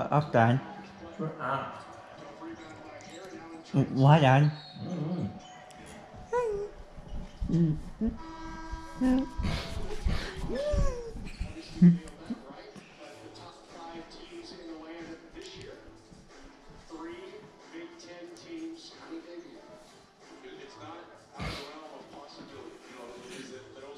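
A television plays voices and music in the room.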